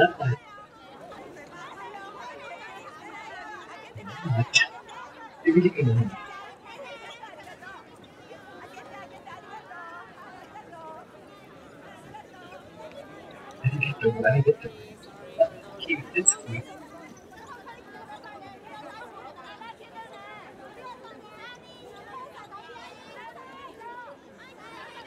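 A large crowd chatters and cheers in a busy echoing space.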